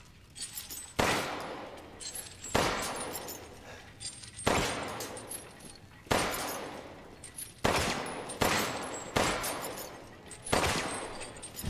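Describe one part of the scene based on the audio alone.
A pistol fires loud shots that echo in a stone chamber.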